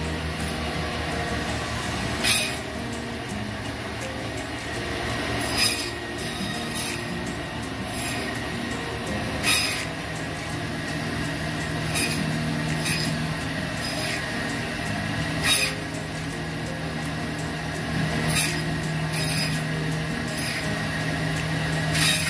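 A band saw motor hums and its blade whirs steadily.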